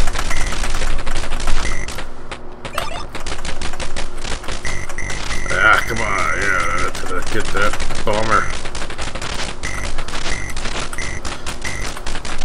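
Small electronic explosions burst now and then.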